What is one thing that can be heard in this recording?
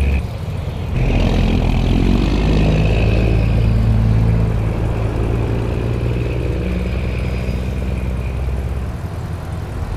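A truck engine rumbles loudly as it pulls away and drives off.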